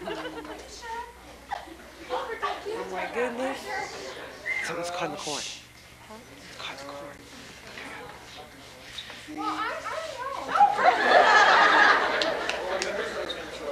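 A young woman talks on a phone.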